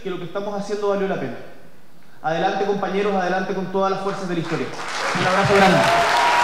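A young man speaks with emphasis into a microphone in an echoing hall.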